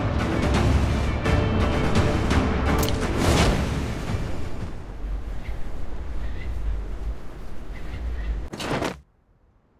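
Wind rushes past during a parachute descent in a video game.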